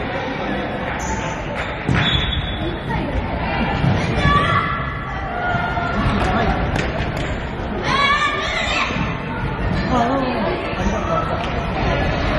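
A futsal ball is kicked on a wooden court floor.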